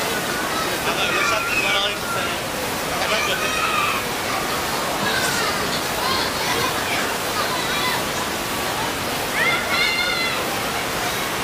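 Children shout and squeal as they run about.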